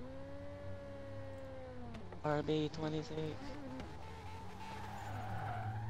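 A sports car engine drones steadily at speed.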